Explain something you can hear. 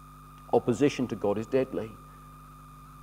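A young man speaks through a microphone in an echoing hall.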